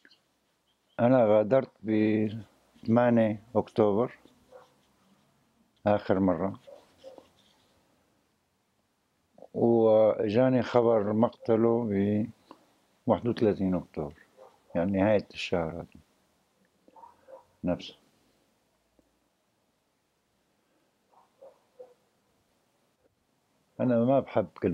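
A middle-aged man speaks slowly and quietly, close by, with long pauses.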